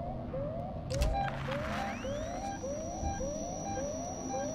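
A handheld motion tracker pings.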